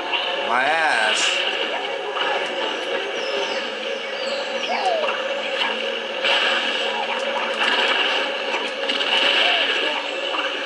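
Short cartoonish sound effects chirp and pop.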